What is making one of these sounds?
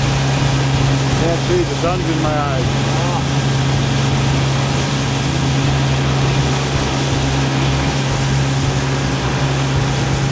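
Water splashes softly against a boat's hull.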